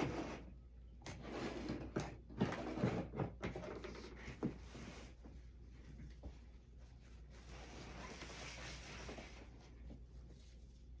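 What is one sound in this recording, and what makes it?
Ribbon rustles and crinkles as it is handled.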